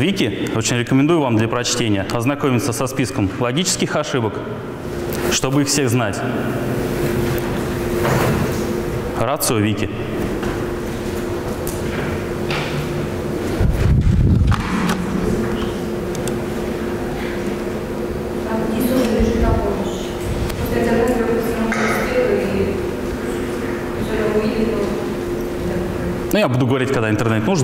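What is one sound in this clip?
A young man speaks calmly through a microphone in an echoing room.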